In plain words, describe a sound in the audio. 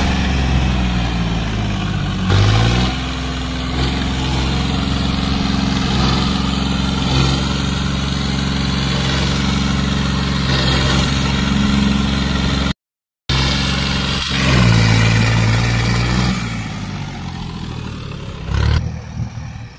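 A tractor's diesel engine rumbles up close and revs.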